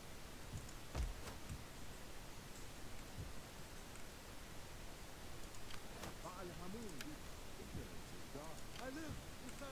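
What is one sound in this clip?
A mouse clicks a few times.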